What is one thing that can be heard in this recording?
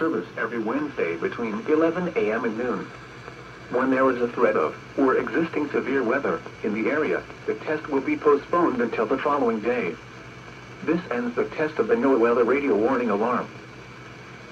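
A man talks over a crackly two-way radio loudspeaker.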